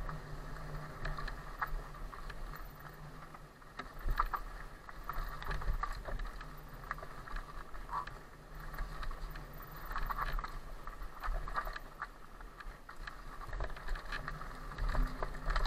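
Bicycle tyres rattle and crunch over a bumpy dirt trail.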